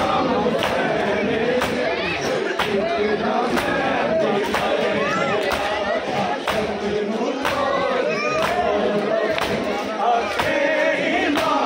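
A large crowd of men chants loudly outdoors.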